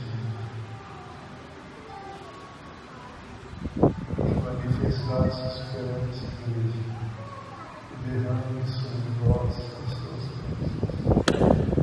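A man speaks calmly and slowly nearby, in a room with a slight echo.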